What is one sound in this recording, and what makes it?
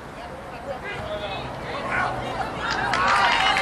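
A crowd of spectators murmurs and cheers, growing louder.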